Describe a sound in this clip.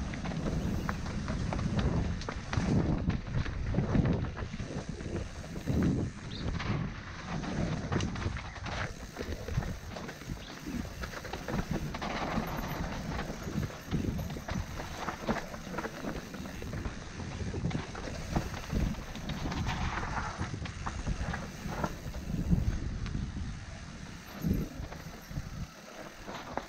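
Mountain bike tyres crunch and rattle over a dirt trail.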